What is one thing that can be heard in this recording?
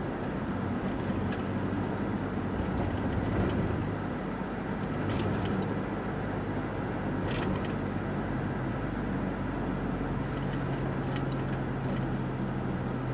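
A car engine hums steadily from inside the car as it drives along.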